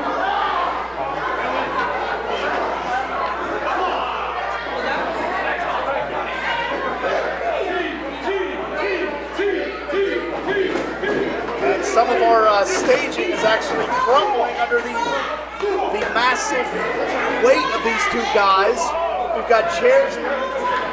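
A crowd of men and women shouts and cheers with excitement nearby.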